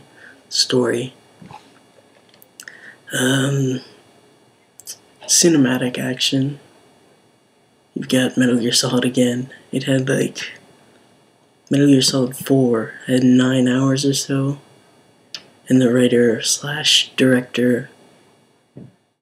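A young man talks calmly and close by, in short phrases with pauses.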